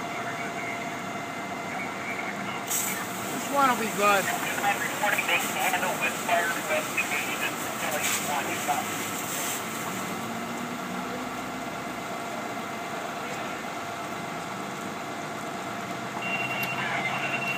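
Water from a fire hose sprays and hisses steadily.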